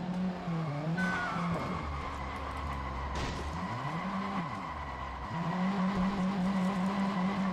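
A car crashes through bushes with rustling leaves and snapping branches.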